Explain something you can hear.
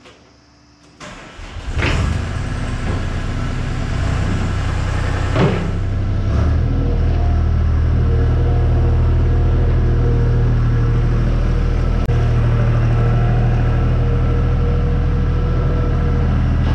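A skid loader engine starts up and rumbles loudly, echoing under a large roof.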